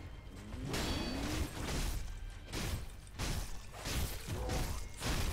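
Steel blades clash and ring sharply again and again.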